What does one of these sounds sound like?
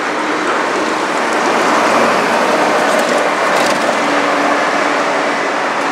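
A bus passes close by with a loud engine rumble.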